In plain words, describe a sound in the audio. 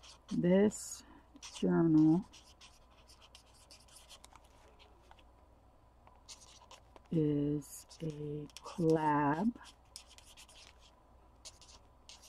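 A felt-tip marker squeaks and scratches across paper.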